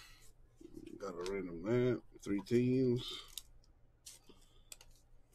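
Trading cards rustle and slide against each other.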